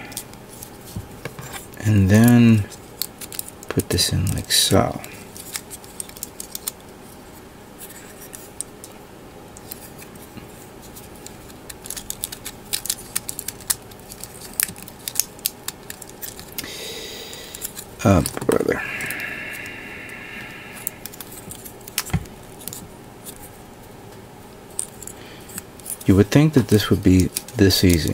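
Plastic model parts click and snap together in hands.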